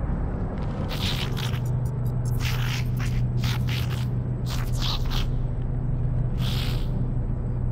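An alien creature babbles in short, chirping bursts of gibberish.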